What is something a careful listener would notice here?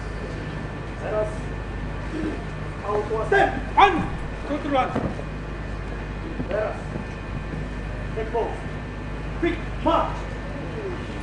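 A man calls out commands loudly.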